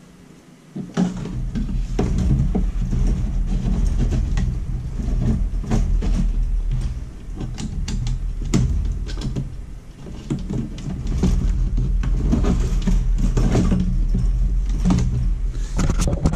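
A metal case clicks and rattles as it is handled.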